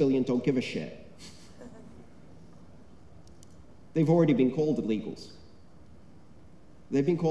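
A man speaks with animation through a microphone and loudspeakers in a large echoing hall, in short bursts with pauses.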